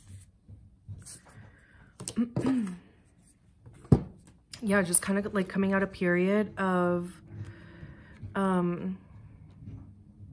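Playing cards slide and tap softly on a table.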